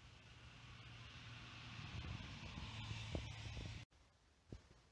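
A coach bus drives past.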